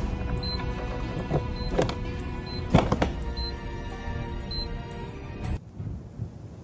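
An electronic timer beeps steadily.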